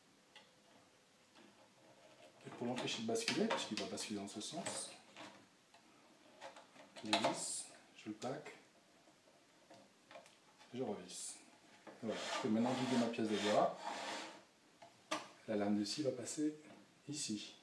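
A plastic jig clicks and slides as a hand adjusts it on a metal table.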